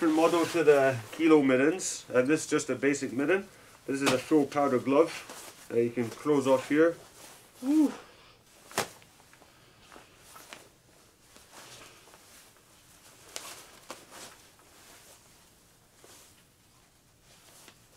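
Fabric rustles as gloves are handled.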